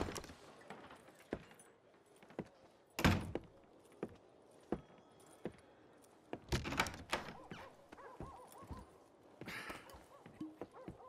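Boots thump on wooden boards.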